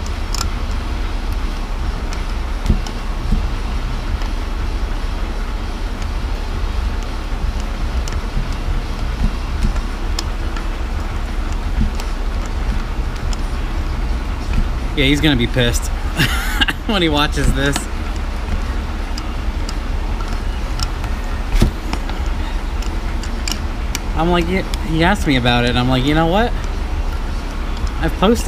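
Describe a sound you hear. Metal pliers click and scrape against an engine part.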